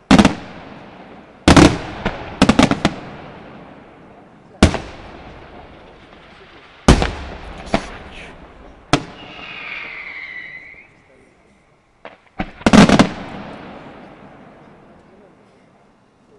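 Fireworks crackle and sizzle.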